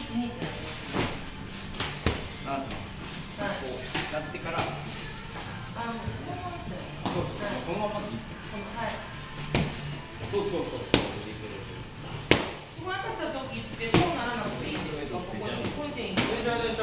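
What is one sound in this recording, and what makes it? Boxing gloves smack sharply against punch mitts.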